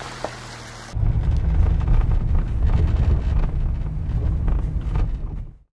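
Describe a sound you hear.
A car engine rumbles loudly from inside the moving car.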